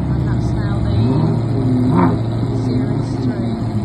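A V8 sports car pulls away, its engine rising under load.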